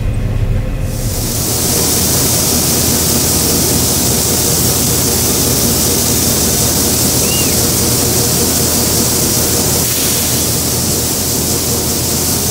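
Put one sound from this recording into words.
Grain pours in a hissing stream into a truck bed.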